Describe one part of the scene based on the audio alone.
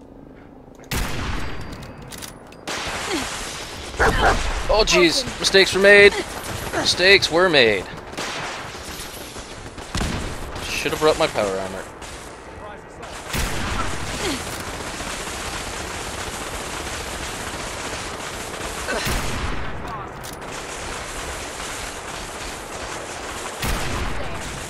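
Laser rifles fire in sharp bursts.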